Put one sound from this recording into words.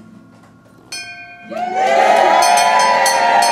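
A brass bell rings out clearly.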